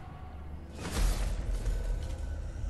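A heavy blow lands with a loud crunch.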